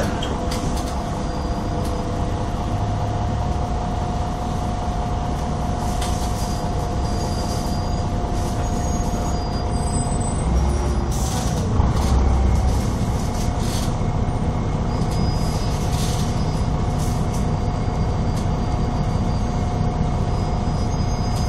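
A bus engine hums steadily from inside the vehicle.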